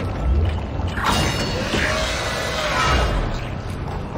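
A heavy metal door slides open with a mechanical whoosh.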